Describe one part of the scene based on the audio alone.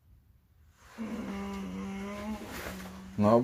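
A young man sings a long held note loudly nearby.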